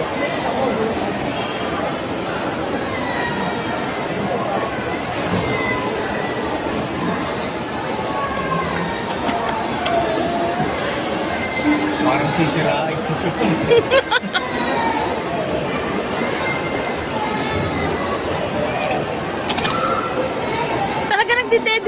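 A busy crowd murmurs in a large echoing hall.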